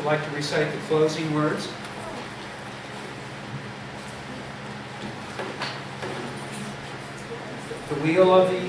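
An elderly man speaks calmly to a gathering.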